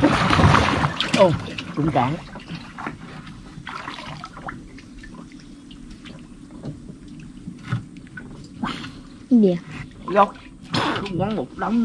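Water splashes as a man wades in a river.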